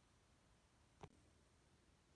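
A plastic toy button clicks.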